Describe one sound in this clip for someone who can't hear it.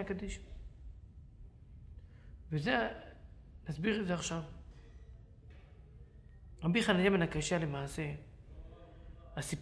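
A middle-aged man speaks calmly and clearly into a microphone, with pauses.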